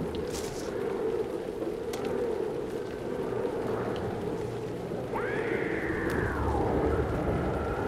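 Footsteps crunch on loose ground.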